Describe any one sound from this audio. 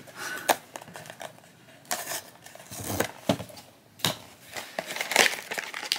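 A cardboard box is torn open.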